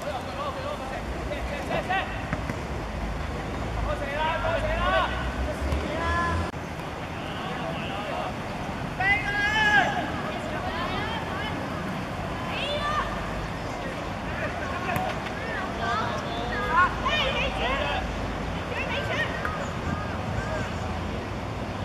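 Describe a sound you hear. Young boys shout to each other across an open field.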